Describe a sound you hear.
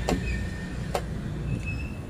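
A metal cap clicks as it is set down.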